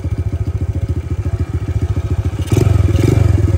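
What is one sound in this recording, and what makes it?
A small four-stroke single-cylinder mini trail bike putters at low revs.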